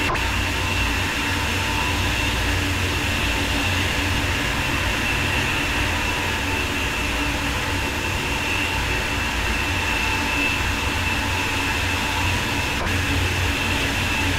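A high-speed train rushes along the tracks with a steady roar and whine.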